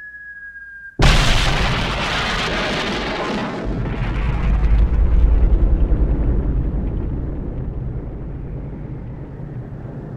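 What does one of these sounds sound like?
A huge explosion booms and rumbles, slowly fading.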